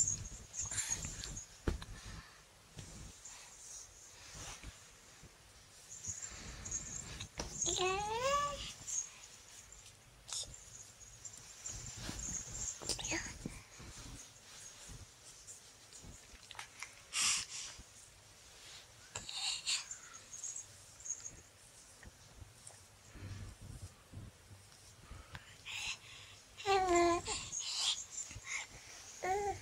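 Bedding rustles softly as a baby rolls about.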